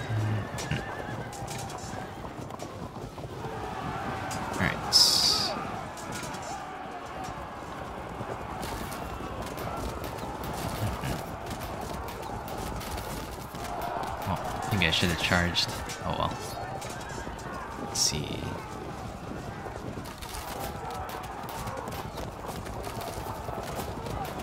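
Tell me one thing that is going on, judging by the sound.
Battle noise of clashing soldiers and gunfire rumbles on steadily.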